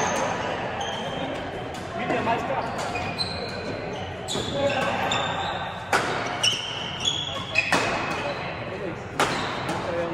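Trainers squeak on a wooden floor.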